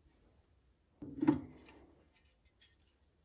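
A metal cover clunks as it is lifted off and set down.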